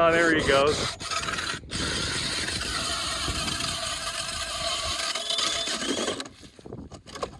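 A power ice auger drills through ice.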